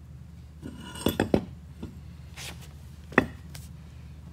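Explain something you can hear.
A heavy metal part clanks and knocks against a concrete floor.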